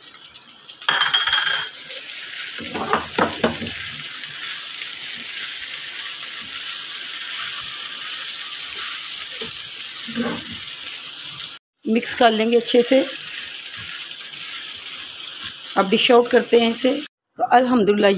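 Food sizzles and crackles in a hot frying pan.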